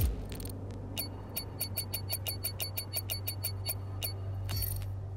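A score counter ticks rapidly and evenly.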